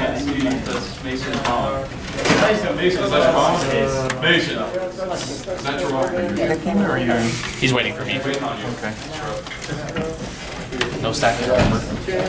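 Playing cards rustle and tap softly against a table.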